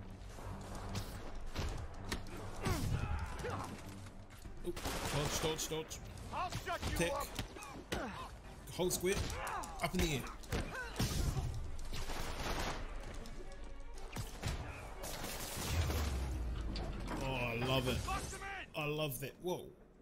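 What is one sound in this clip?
Punches and kicks thud and crack in quick bursts.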